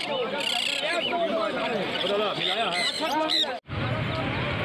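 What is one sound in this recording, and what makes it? Parrots chirp and squawk close by.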